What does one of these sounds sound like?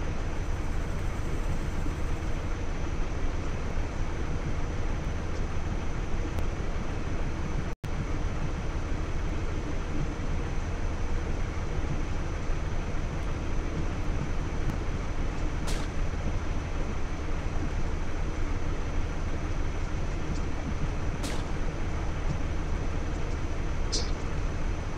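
An armoured vehicle's engine rumbles steadily while idling.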